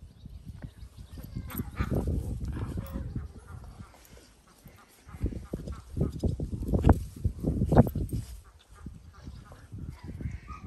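A dog growls playfully.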